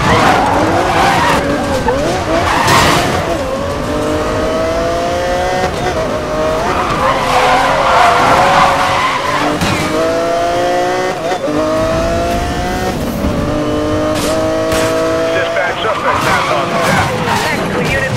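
Tyres screech as a car skids.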